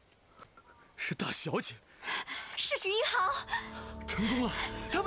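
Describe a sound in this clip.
A young woman exclaims and laughs close by.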